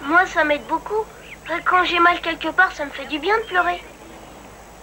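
A young boy speaks calmly nearby.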